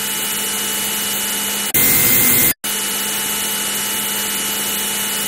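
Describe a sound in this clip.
A synthesized fighter-jet engine roars steadily in an old flight simulator game.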